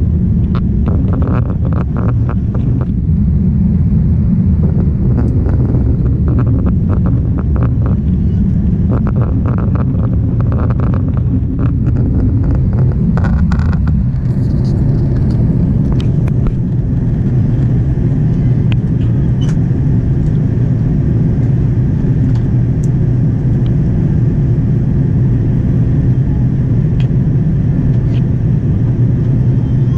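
A jet engine roars steadily inside an airplane cabin in flight.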